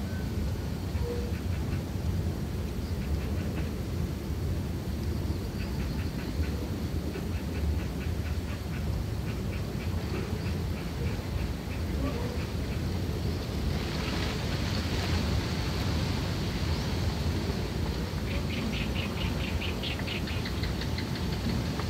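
Tiny rapid clicks come from small animals crunching food.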